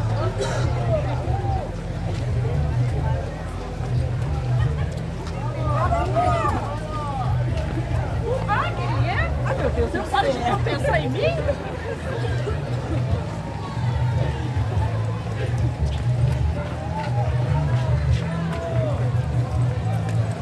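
A large crowd of men and women chatters and cheers outdoors.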